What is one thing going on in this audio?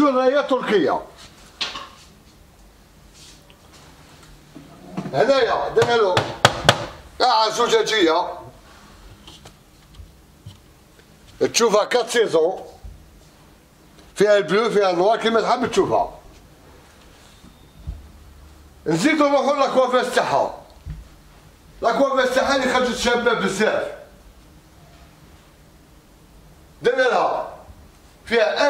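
A man speaks calmly and clearly in short bursts, close by.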